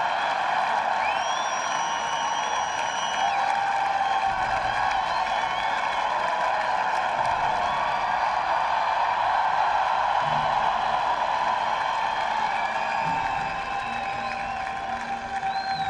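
A large crowd cheers and applauds loudly in an open stadium.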